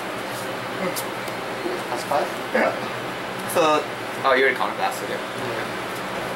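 A deck of playing cards is shuffled by hand.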